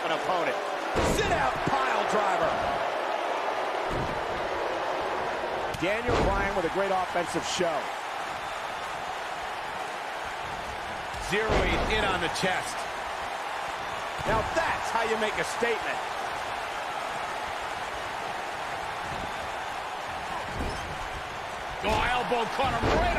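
Heavy blows land with loud thuds.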